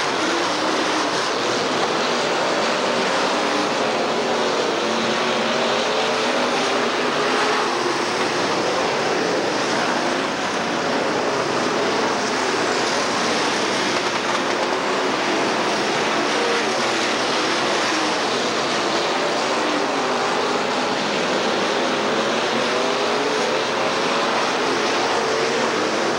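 Race car engines roar loudly as cars speed around a track.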